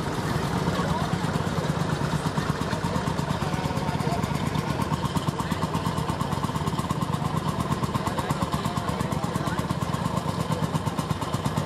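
An old tractor engine chugs in a steady, rapid beat as it drives closer.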